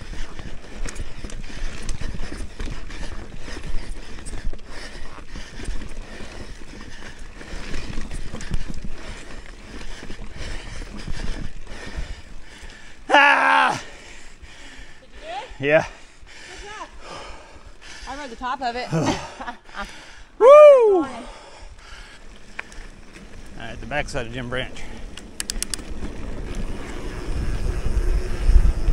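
Bicycle tyres roll and rattle over a rough dirt trail.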